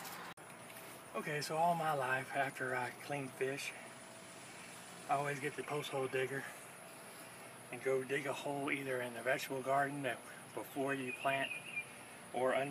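A middle-aged man speaks calmly to the listener outdoors.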